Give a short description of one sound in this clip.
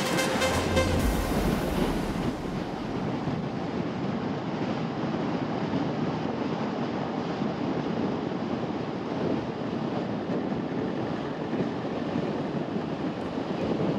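Tyres roll steadily over a paved road.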